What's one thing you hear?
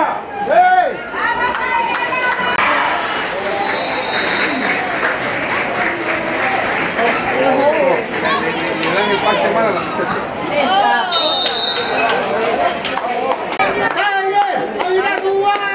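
A crowd of young women shouts and cheers from the sidelines outdoors.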